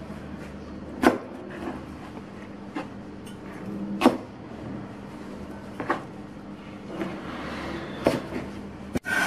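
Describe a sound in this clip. A knife chops down onto a cutting board in sharp knocks.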